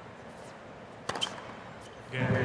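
A racket strikes a tennis ball with a sharp pop.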